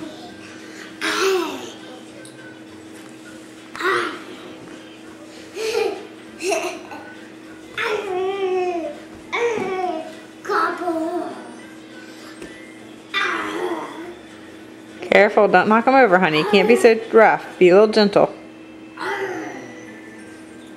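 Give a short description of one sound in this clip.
A little girl squeals and babbles excitedly close by.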